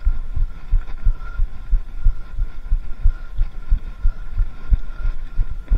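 A bicycle rattles as it rides over rough ground.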